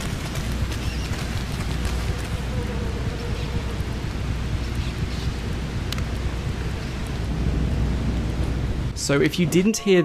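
Water flows steadily through an echoing tunnel.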